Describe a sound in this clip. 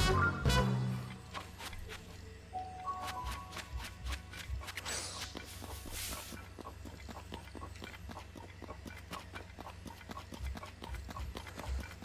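Footsteps patter quickly on soft ground.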